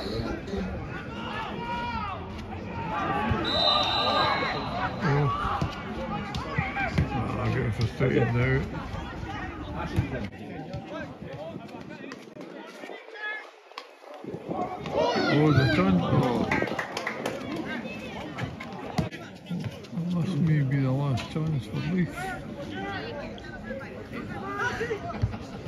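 Football players shout to each other across an open pitch outdoors.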